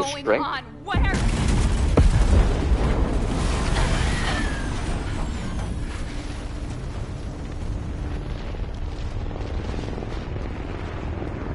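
A huge explosion booms and roars, then rumbles on.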